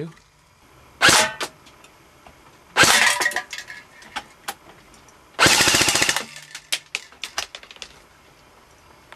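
Pellets clink and clatter against metal cans.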